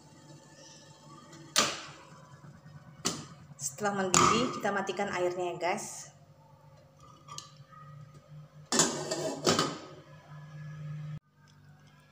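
A glass lid clinks against a pot.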